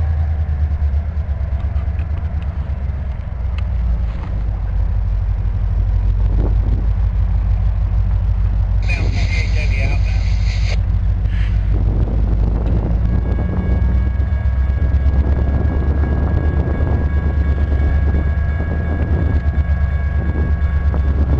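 Wind buffets loudly outdoors throughout.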